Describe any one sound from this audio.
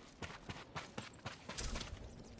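Footsteps scuffle quickly on hard ground.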